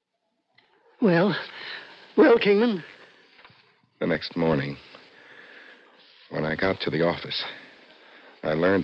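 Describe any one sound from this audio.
A woman speaks with strong emotion into a microphone, heard through an old radio broadcast.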